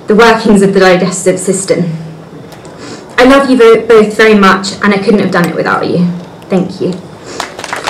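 A woman speaks calmly into a microphone over a loudspeaker in a large hall.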